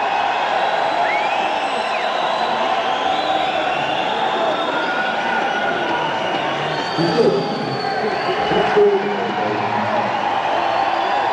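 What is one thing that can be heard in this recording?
An electric guitar plays a bending, sustained melody.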